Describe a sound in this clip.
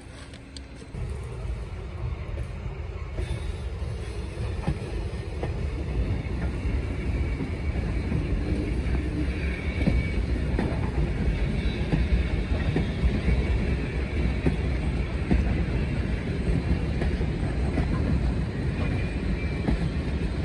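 A freight train rumbles and clatters past close by on the rails.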